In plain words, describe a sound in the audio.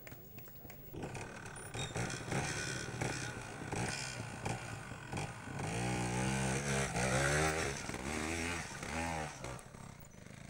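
A motorcycle engine revs hard in bursts.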